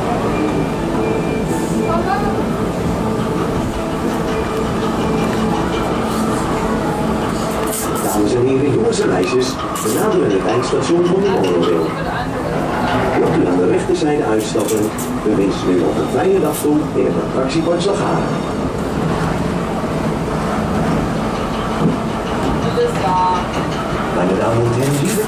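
Train wheels clatter and click on the rails.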